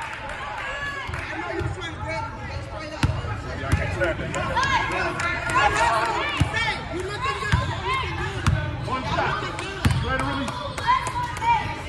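A crowd of children and adults chatters and calls out in a large echoing gym.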